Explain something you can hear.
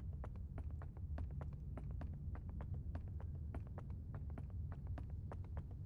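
Quick footsteps run through grass.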